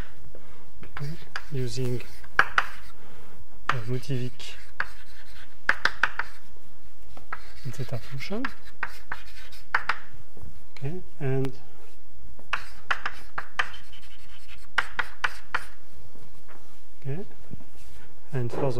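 A young man speaks calmly in an echoing room.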